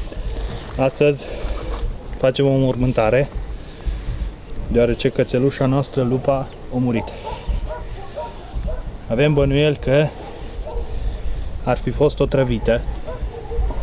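A man speaks calmly outdoors.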